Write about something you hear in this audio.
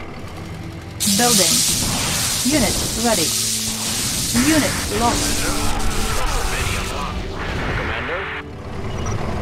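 Explosions boom and crackle in a battle.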